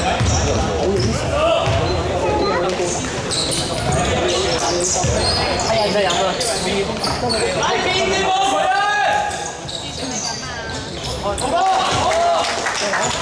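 Young players shout and call out to each other.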